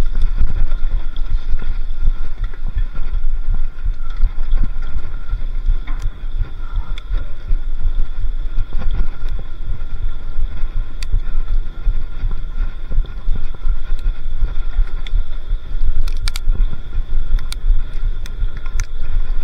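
Wind buffets loudly against a microphone while riding.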